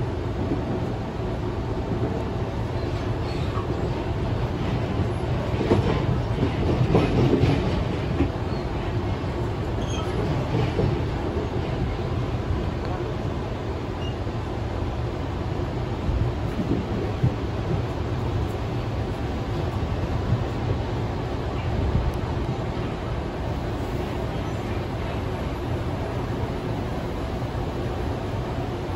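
A train's wheels clatter over rail joints.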